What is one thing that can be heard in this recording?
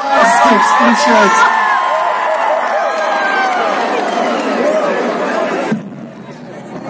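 A large crowd cheers and screams loudly nearby.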